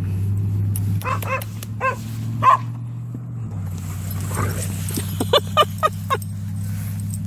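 Dogs bark outdoors in short bursts.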